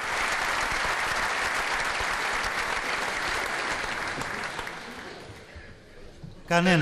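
A large audience applauds in a big hall, then the applause fades.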